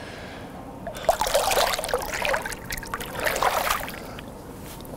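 Water splashes as hands move through it.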